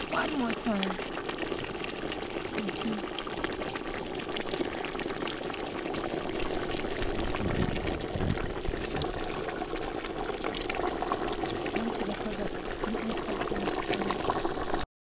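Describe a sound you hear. A pot of stew bubbles and simmers.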